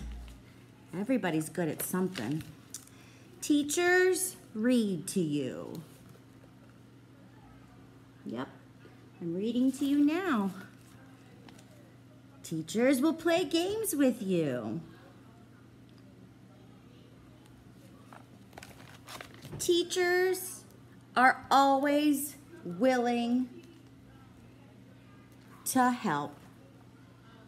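A middle-aged woman reads aloud and talks expressively close by, in bursts with pauses.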